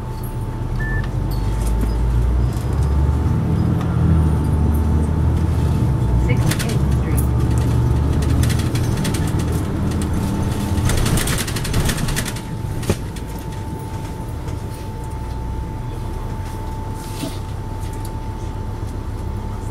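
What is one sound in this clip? A bus engine rumbles low and steady from inside the bus.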